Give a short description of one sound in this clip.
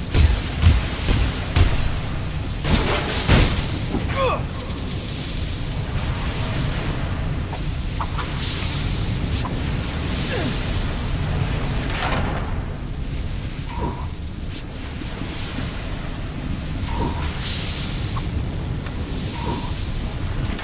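Jet flames roar steadily from a flying game character's boots.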